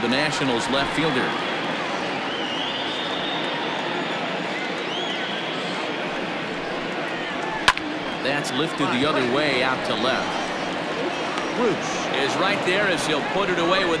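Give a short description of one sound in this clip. A large crowd murmurs and cheers steadily in an open stadium.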